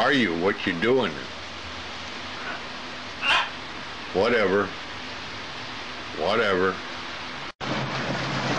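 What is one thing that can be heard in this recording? A parrot squawks loudly.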